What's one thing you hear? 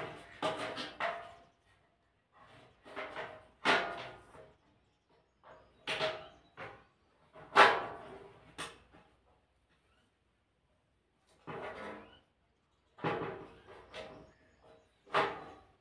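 A plastic grille knocks and rattles as it is pushed into place.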